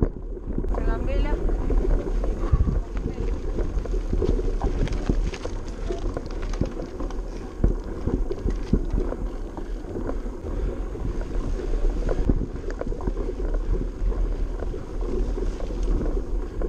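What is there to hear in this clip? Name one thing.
Bicycle tyres rattle and crunch over a bumpy dirt trail.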